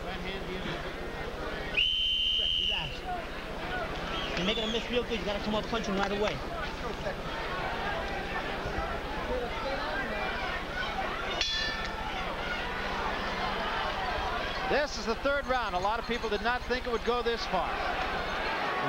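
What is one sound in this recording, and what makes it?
A large crowd roars in a big echoing arena.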